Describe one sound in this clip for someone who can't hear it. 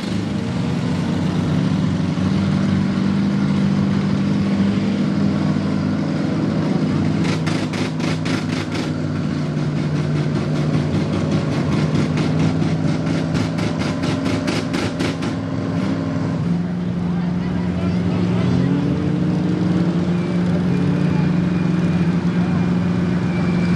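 A pickup truck engine roars loudly and revs.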